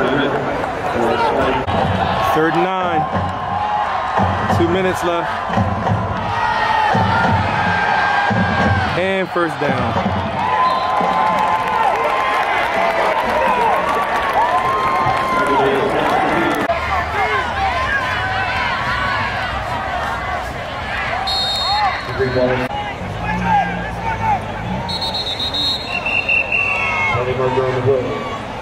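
A large crowd cheers and chatters outdoors.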